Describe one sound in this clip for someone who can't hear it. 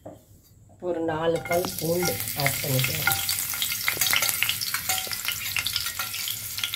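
Garlic sizzles and crackles in hot oil in a pan.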